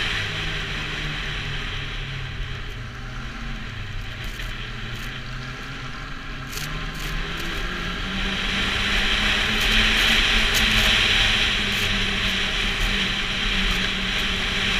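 A snowmobile engine drones steadily and rises in pitch as it speeds up.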